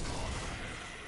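Metal blades clash and clang in a fight.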